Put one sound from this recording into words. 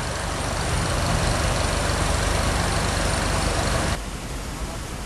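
A tractor engine chugs nearby.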